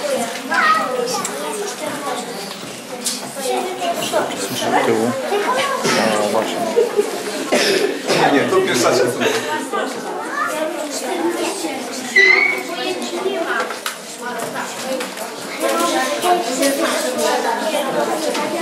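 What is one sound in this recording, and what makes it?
A woman speaks softly to children close by.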